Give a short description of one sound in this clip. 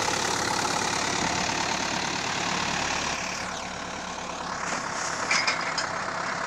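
A post hole auger grinds into the soil.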